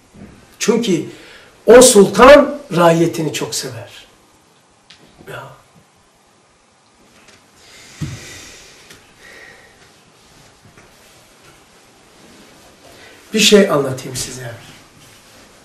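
An elderly man speaks calmly nearby in an echoing room.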